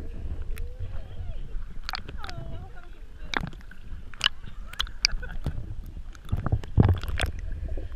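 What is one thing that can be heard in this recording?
Pigs paddle and splash through the water.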